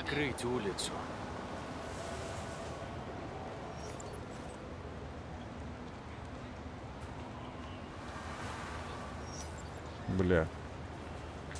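A young man speaks briefly and with amusement into a close microphone.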